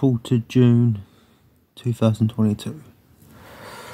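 A man speaks close by with animation.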